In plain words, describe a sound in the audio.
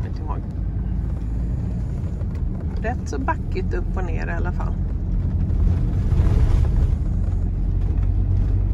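A vehicle's engine rumbles steadily while driving.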